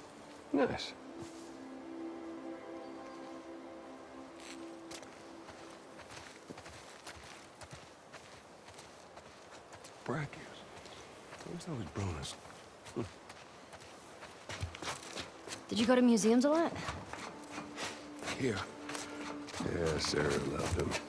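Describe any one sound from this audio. Footsteps crunch over grass and then climb steps.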